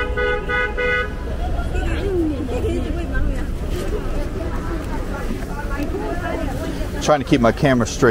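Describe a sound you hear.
Traffic hums and rumbles nearby.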